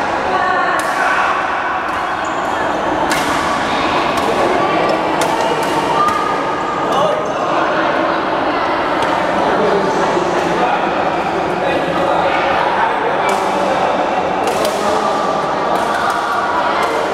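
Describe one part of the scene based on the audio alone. Young men call out to each other during play, echoing across the hall.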